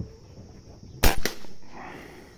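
A rifle fires a single sharp, loud shot close by.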